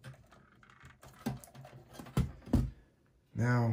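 Metal parts clatter and click as they are handled.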